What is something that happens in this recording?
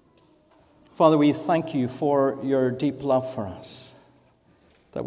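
A man sings out loudly through a microphone.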